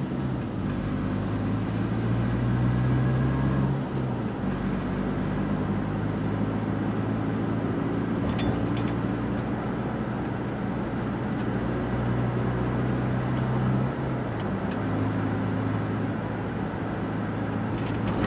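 A car engine hums steadily from inside the car, its pitch shifting as it changes gear.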